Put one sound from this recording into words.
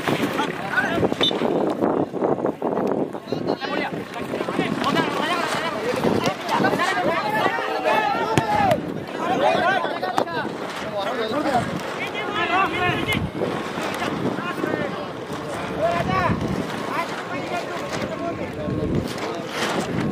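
A crowd of spectators chatters and shouts outdoors.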